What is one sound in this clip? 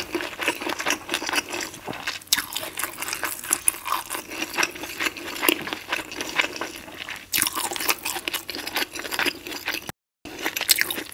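A woman chews crunchy food wetly and closely into a microphone.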